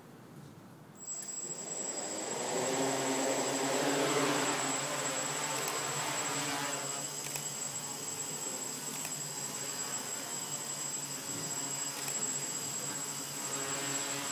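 A small drone's propellers whir and buzz steadily.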